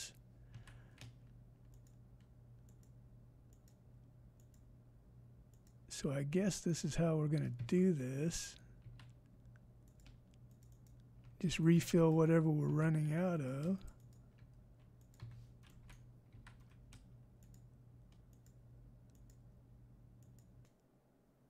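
Soft clicks sound as items are moved around in a game menu.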